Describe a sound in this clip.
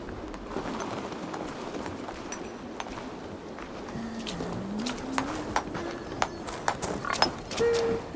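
Footsteps tread softly on stone.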